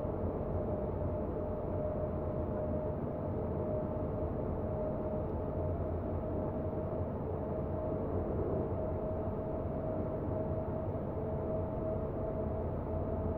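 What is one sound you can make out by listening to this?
Train wheels rumble low over the rails.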